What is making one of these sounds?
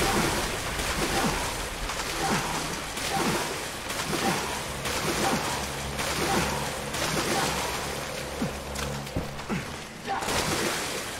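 Water splashes in steady strokes as a figure swims.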